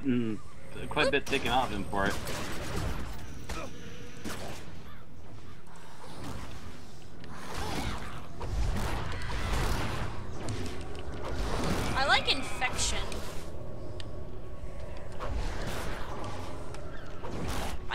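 A blast booms during a fight.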